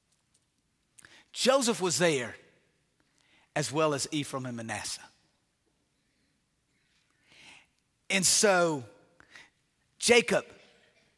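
A middle-aged man preaches with animation into a microphone, in short bursts with pauses.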